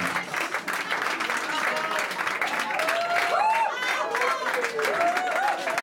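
A crowd of people chatters loudly close by.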